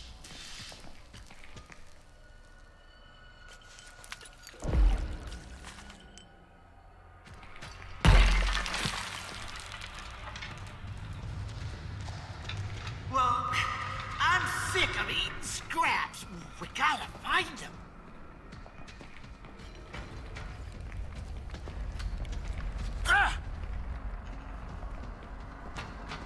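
Footsteps scuff on a concrete floor.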